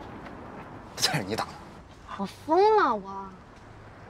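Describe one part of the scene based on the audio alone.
A young man speaks loudly and with feeling, close by.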